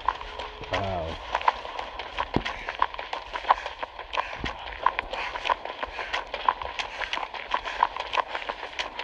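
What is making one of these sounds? A game character's footsteps run through grass.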